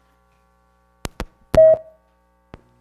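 A microphone is knocked with loud thumps.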